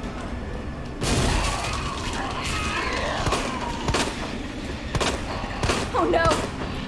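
A handgun fires several sharp shots.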